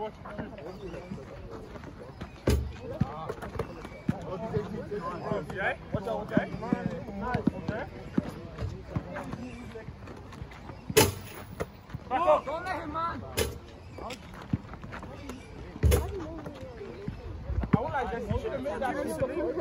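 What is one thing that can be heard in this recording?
A basketball bounces on hard ground.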